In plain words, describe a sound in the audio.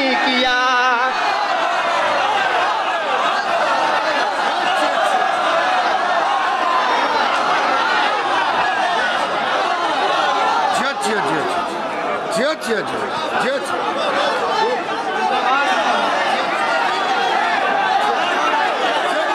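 A crowd of men cheers and calls out in praise.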